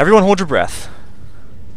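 A young man speaks briefly and loudly into a close microphone.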